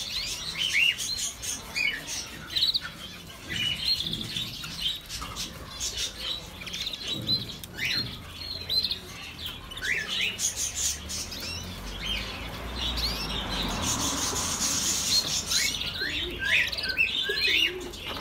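A small parakeet chirps and squawks repeatedly, close by.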